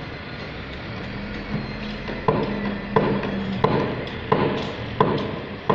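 A wheel loader's engine strains and revs as it climbs a sand pile.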